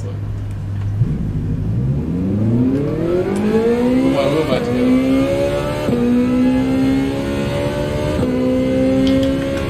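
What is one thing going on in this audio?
A race car engine revs up and climbs through the gears.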